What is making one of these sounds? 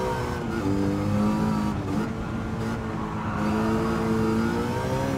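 A car engine roars at high revs, its pitch dropping briefly as it shifts gear.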